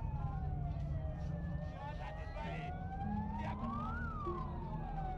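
A crowd of men shouts and talks in agitation.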